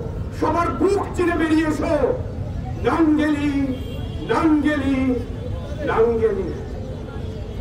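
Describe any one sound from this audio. A man chants loudly into a microphone, heard through loudspeakers outdoors.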